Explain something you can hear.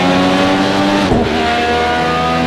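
A racing car engine shifts gear with a quick dip in pitch.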